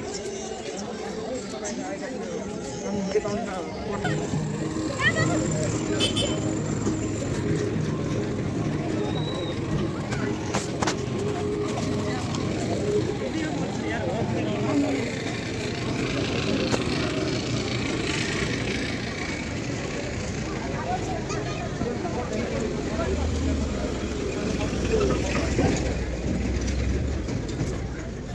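A busy street crowd chatters outdoors.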